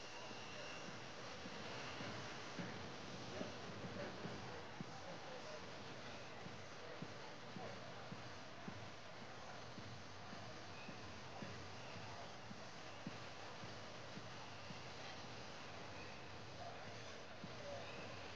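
A large outdoor crowd murmurs and chatters in the distance.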